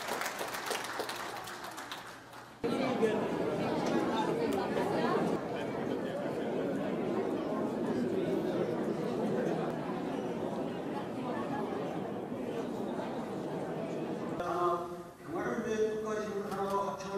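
A crowd chatters and murmurs in a large hall.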